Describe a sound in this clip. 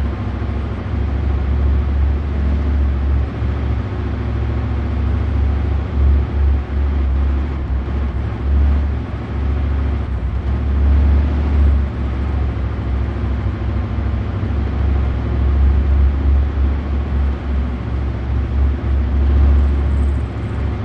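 A tank engine rumbles low and steadily as the tank drives along.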